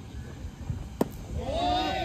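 A bat cracks sharply against a ball.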